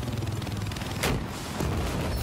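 A rocket launcher fires with a sharp blast.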